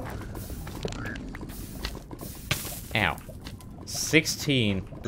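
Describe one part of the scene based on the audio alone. Lava bubbles and pops.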